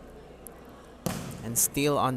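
A volleyball is struck hard with a hand.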